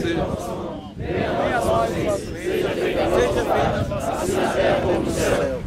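A crowd of young men and adults murmurs and talks nearby.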